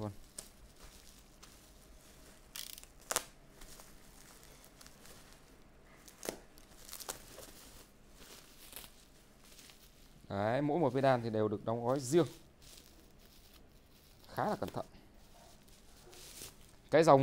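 Bubble wrap crinkles and rustles as hands handle it.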